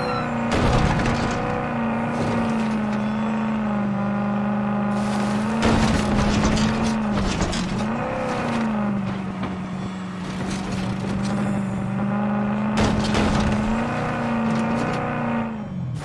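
A car engine hums steadily, its pitch rising and falling as the car speeds up and slows down.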